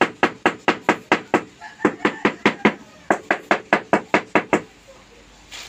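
A wooden handle taps rapidly on a floor tile.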